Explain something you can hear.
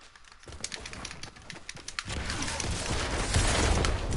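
Building pieces snap into place with quick clicks.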